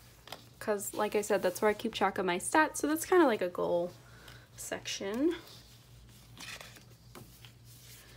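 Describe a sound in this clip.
A sheet of paper rustles and flaps as it is flipped.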